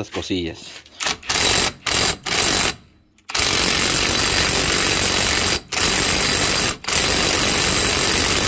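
An electric impact wrench hammers on a wheel hub nut.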